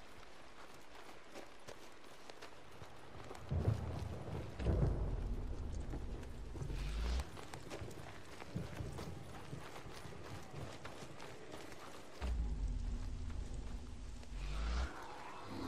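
Footsteps run quickly over a dirt path.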